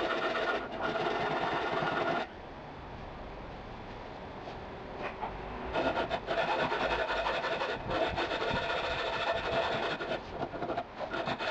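A file rasps back and forth across metal in quick strokes.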